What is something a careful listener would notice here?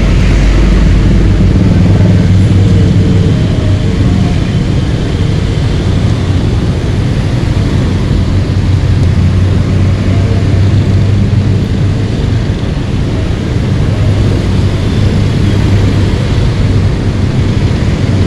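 Traffic rumbles all around on a busy road.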